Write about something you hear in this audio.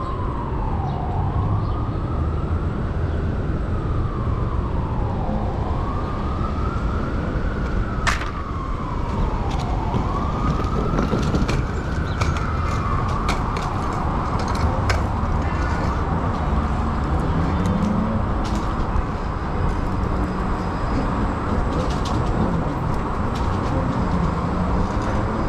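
City traffic hums in the background.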